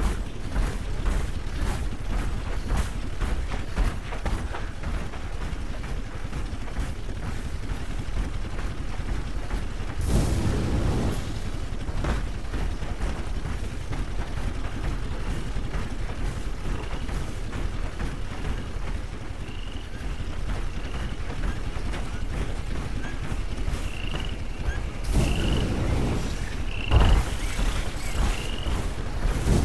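Heavy metal footsteps of a walking robot thud steadily.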